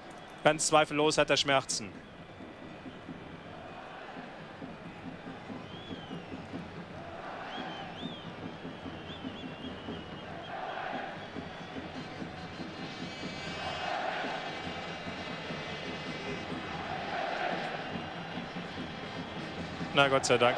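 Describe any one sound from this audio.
A large stadium crowd murmurs and roars in waves.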